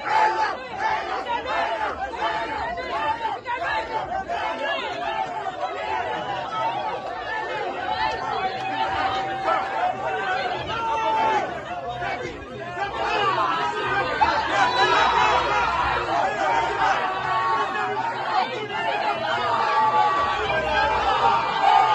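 A crowd of young men and women shouts and cheers close by.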